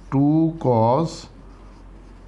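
A man speaks loudly and briefly, close to a microphone.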